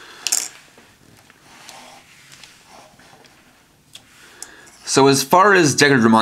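Plastic toy pieces click and clatter as they are handled.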